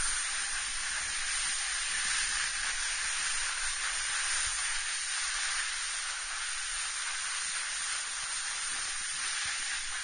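Snowboards scrape and hiss steadily over packed snow.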